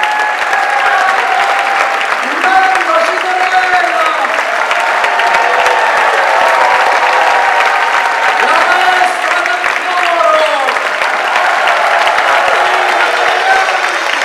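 A band of acoustic instruments plays along with the choir.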